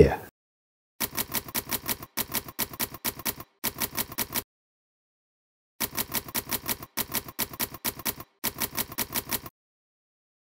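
Typewriter keys clack in quick bursts.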